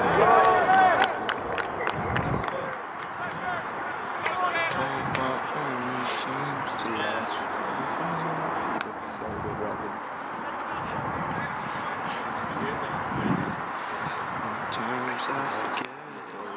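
Young men talk among themselves close by.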